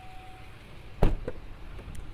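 A car door thuds.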